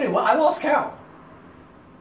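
A man laughs cheerfully close by.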